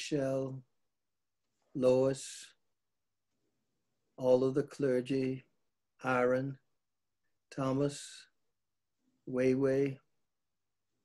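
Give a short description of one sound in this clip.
An elderly man speaks calmly and clearly in short phrases, close to a microphone.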